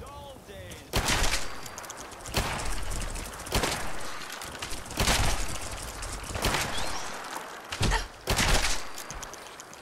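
Rifle shots ring out in bursts.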